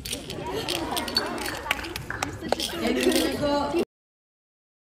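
A young girl laughs and chatters excitedly up close.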